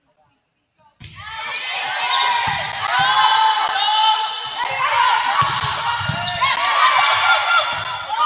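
Sneakers squeak sharply on a hard court floor, echoing in a large hall.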